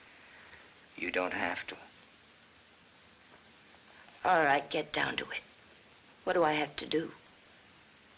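A young woman answers softly, close by.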